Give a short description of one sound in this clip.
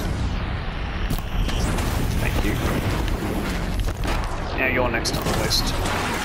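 A laser beam hums and crackles.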